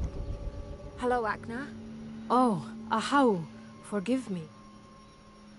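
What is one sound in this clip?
A young woman speaks apologetically, close by.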